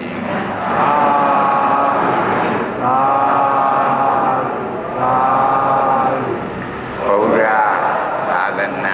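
An elderly man speaks slowly and calmly through a microphone.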